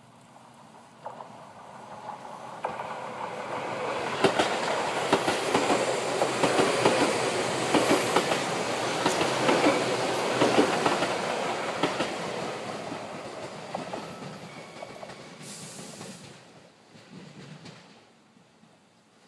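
A passing train rumbles and clatters along the rails, growing louder and then fading away.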